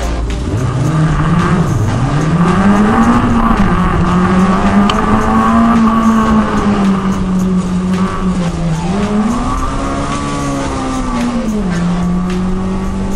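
A car engine revs up and down as the car speeds through tight turns.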